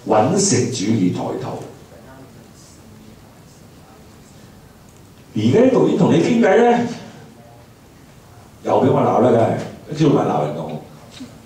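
An older man speaks calmly into a microphone, heard through a loudspeaker, in short bursts with pauses.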